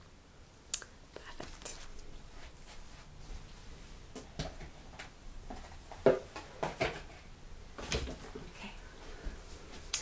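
Clothing rustles and things knock as a young woman moves about.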